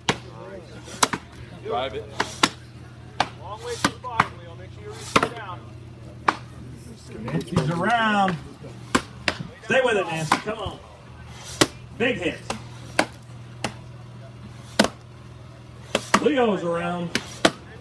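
An axe chops into wood with sharp, repeated thuds.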